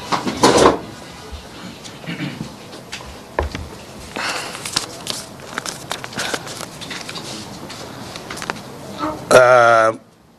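An elderly man speaks slowly through a microphone.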